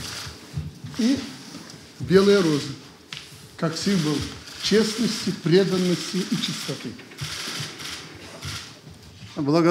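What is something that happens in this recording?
A man speaks calmly in a large echoing hall.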